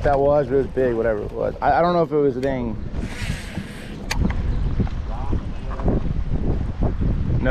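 Water laps and splashes gently against a small boat outdoors.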